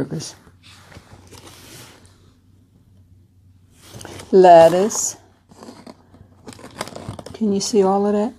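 Paper wrapping crinkles and rustles.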